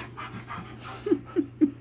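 A dog gives short high yelps.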